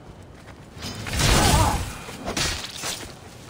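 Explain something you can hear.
A spear strikes a soldier with a heavy thud.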